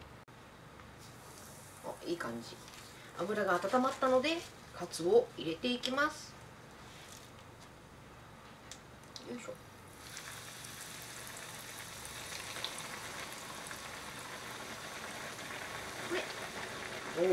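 Hot oil sizzles and crackles in a pan, growing loud and steady as food drops in.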